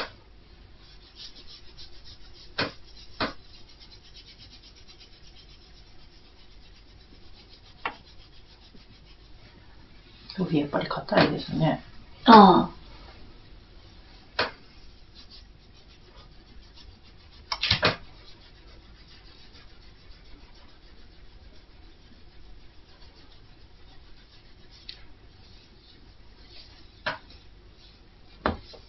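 Fingers rub and rustle through hair.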